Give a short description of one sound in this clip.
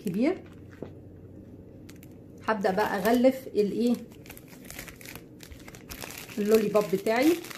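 A plastic bag crinkles and rustles close by.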